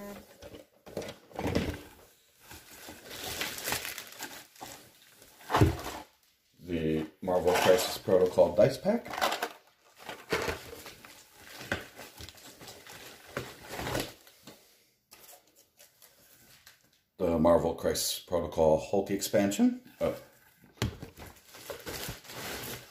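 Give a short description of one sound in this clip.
Plastic bubble wrap rustles and crinkles as it is handled.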